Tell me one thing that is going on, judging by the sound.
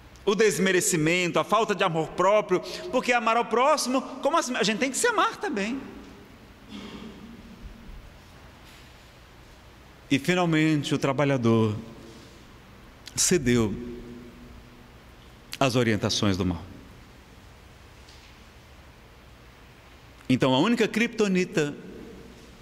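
A man speaks expressively into a microphone, in short phrases with long pauses.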